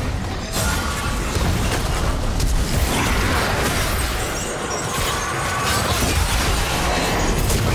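Fantasy game combat effects crackle, whoosh and clash.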